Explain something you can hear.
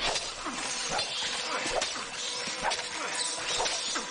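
A blade slashes and strikes flesh with wet thuds.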